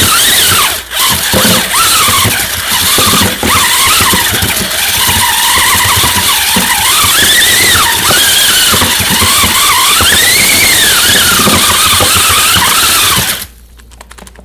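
A vacuum cleaner roars loudly, its whine rising and falling.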